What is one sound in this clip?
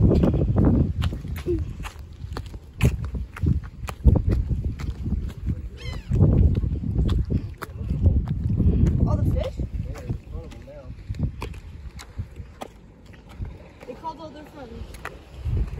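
Footsteps crunch on dry dirt and grass.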